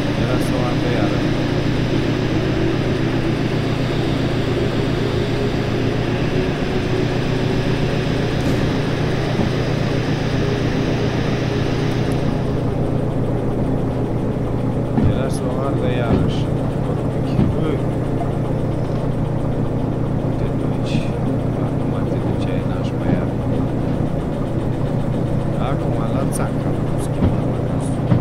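A diesel locomotive engine rumbles steadily.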